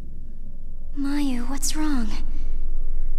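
A young girl asks a question softly.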